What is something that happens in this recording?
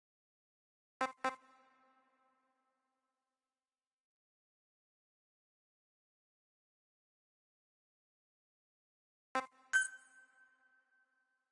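Short electronic menu beeps chime twice.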